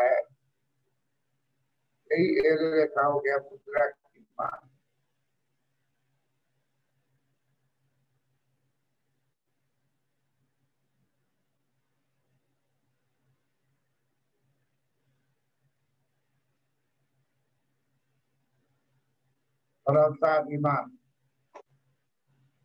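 An elderly man speaks calmly over an online call, in short bursts with long pauses.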